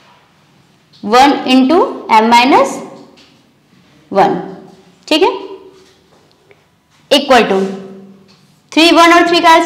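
A young woman speaks clearly and calmly, close to a microphone, with pauses.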